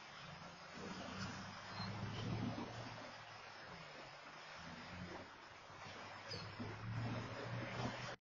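Car tyres hiss on the road at a distance.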